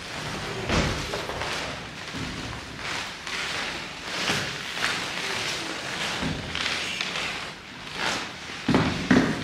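A man chants prayers in a room with light echo.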